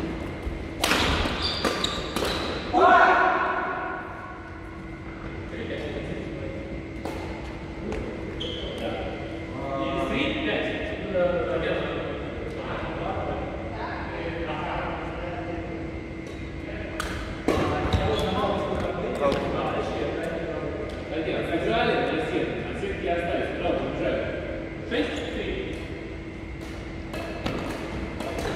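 Shuttlecocks are struck with sharp racket pops in a large echoing hall.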